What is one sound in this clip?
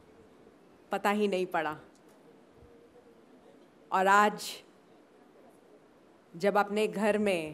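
A young woman speaks warmly into a microphone, heard through a loudspeaker, with pauses between phrases.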